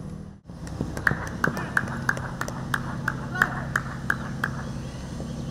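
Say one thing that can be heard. A man claps his hands in a quick, steady rhythm.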